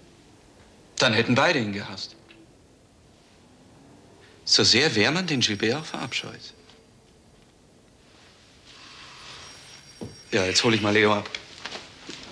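A man speaks urgently up close.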